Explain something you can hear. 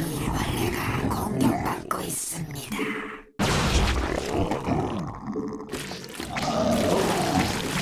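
Game battle sounds crackle and boom.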